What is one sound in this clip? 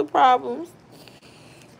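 A young woman speaks briefly and playfully, close to the microphone.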